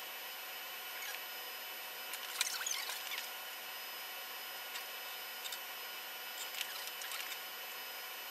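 Plastic clicks and rattles as a man handles small lab items.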